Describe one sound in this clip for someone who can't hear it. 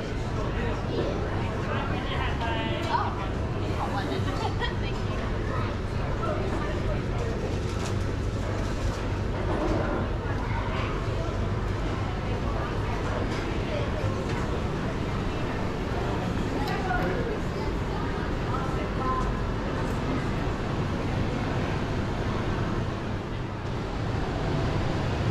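Indistinct voices of men and women murmur at a distance.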